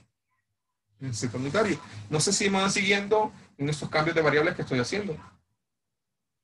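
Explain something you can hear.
A man speaks calmly through an online call.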